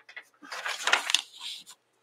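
A sheet of paper rustles as it is handled.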